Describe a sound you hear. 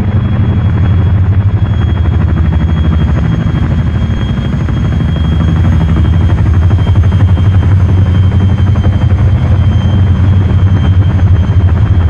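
Helicopter rotors thump loudly and steadily close by.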